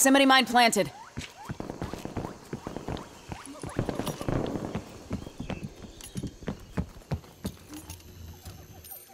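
Footsteps thump quickly on hard ground and wooden floors.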